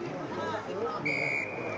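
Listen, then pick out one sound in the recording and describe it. An umpire blows a sharp whistle.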